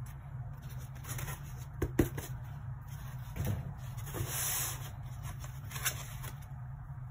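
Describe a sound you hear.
Foam packing rustles and scrapes.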